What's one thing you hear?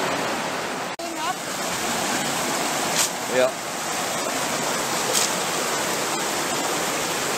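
A shallow stream rushes over rocks.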